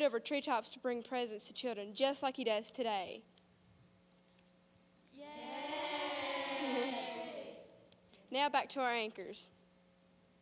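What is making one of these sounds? A group of children call out together in unison.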